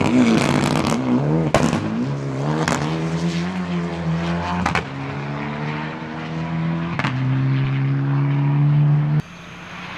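A rally car engine roars and revs hard, then drones away into the distance.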